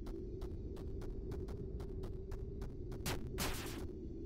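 Rapid electronic shots fire in quick succession.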